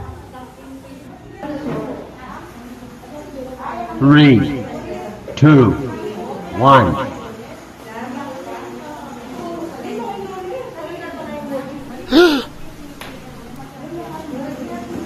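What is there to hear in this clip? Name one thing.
A young woman talks nervously close by.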